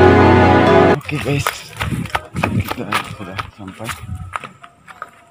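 Sandals crunch over dry leaves and dirt.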